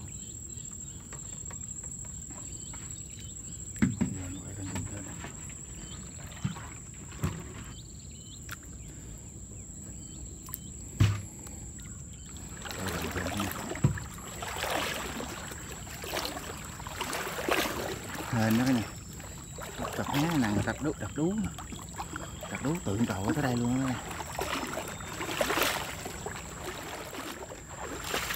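Water laps gently against a bank.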